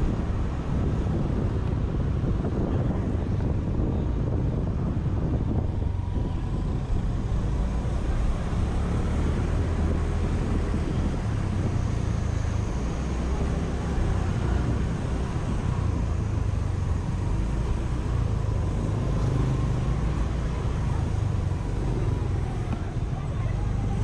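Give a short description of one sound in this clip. A scooter engine hums steadily up close while riding.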